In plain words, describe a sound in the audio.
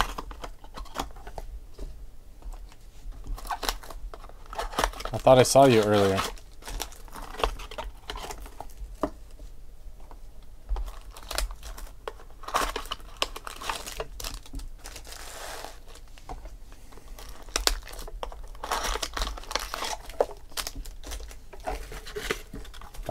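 Cards slide and flick against each other.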